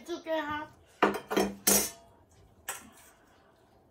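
A spoon scrapes against a metal plate.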